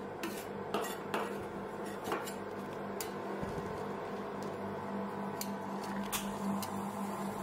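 Metal spatulas tap and scrape on a metal plate.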